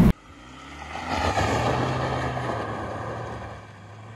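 Tyres spin and spray loose gravel.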